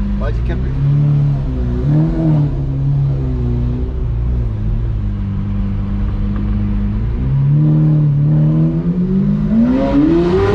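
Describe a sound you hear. A sports car engine rumbles and burbles at low speed.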